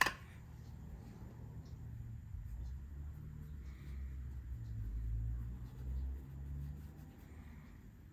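Hands roll a clay coil back and forth with a soft, dull rumble.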